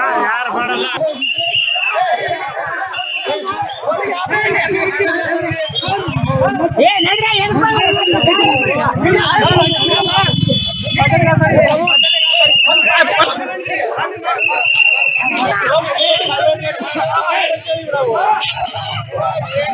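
A crowd of men argue and shout loudly outdoors.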